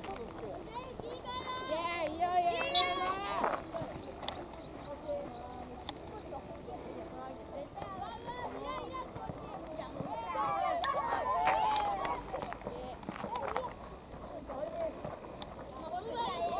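Young boys shout and call to each other across an open field.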